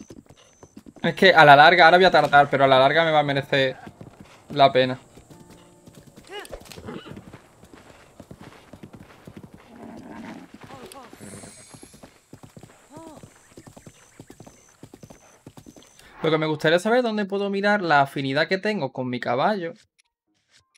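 A young man talks with animation into a nearby microphone.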